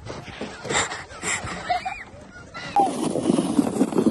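A child squeals nearby.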